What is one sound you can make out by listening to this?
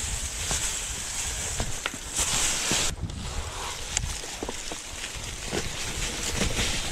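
Bicycle tyres crunch and rattle over dry leaves and stones.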